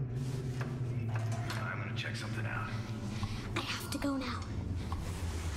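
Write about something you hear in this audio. A young child speaks quietly and nervously.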